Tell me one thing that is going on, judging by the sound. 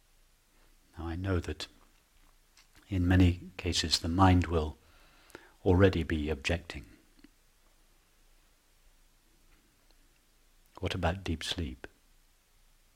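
A man speaks calmly and slowly, close to a microphone, with long pauses.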